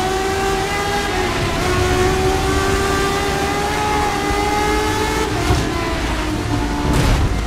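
Rain hisses steadily on the track.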